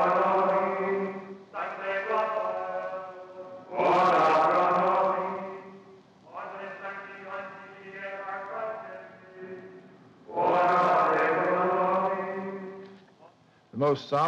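A choir sings slow, sustained chords in a large echoing hall.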